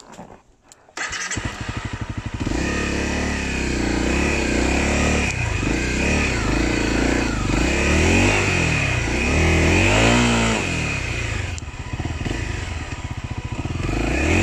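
A motorcycle engine starts and idles loudly, revving briefly.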